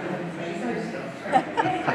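A middle-aged woman laughs close by.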